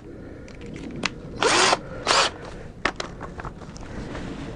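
A tool clicks and knocks as it is handled.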